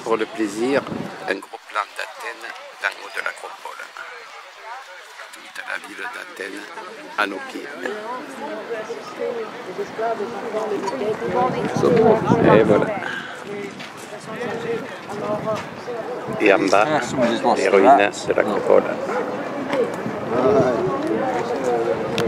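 A man talks close by, outdoors.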